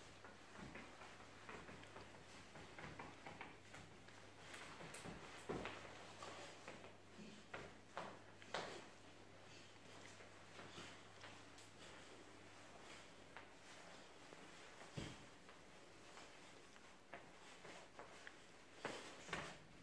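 A dog wriggles and rustles on a rug.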